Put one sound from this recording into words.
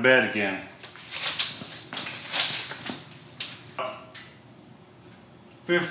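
A metal tape measure rattles as it is pulled out.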